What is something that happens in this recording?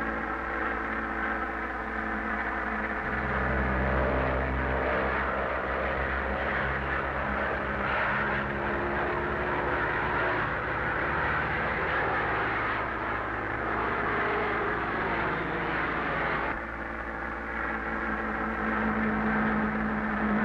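Propeller plane engines drone loudly and steadily.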